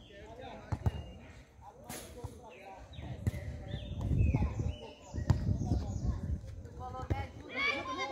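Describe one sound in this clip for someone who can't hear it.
A football thuds sharply as it is kicked.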